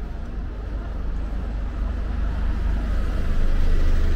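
A bus engine hums as the bus drives past close by.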